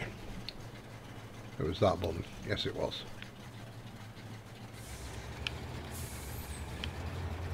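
A tractor engine idles with a low, steady hum.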